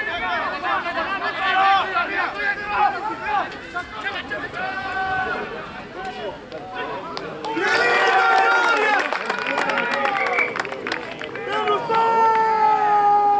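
Players shout and call out to one another outdoors.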